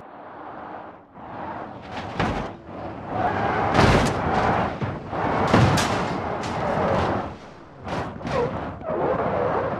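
A sports car engine roars at speed.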